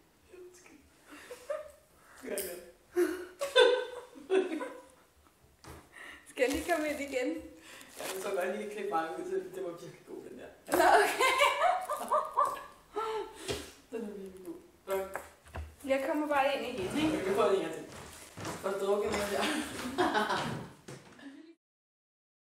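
A second young woman talks and laughs close by.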